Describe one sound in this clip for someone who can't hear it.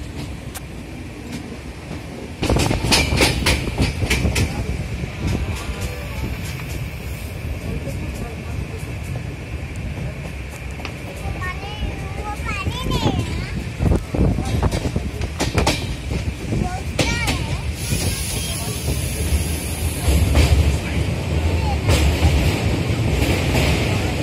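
Wind blows against the microphone outdoors, gusting now and then.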